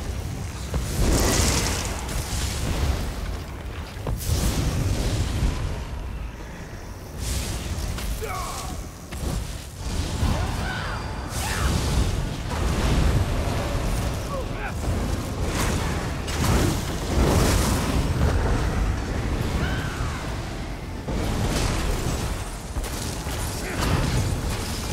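Weapons clash and strike in a video game fight.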